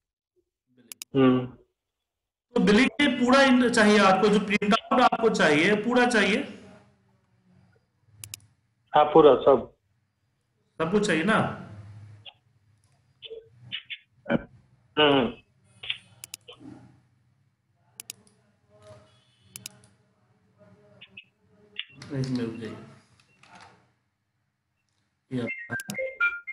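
A man speaks calmly through a microphone on an online call, explaining in bursts.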